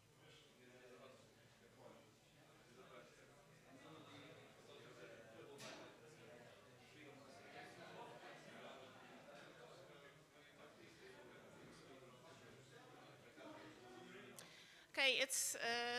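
An audience murmurs quietly in the background.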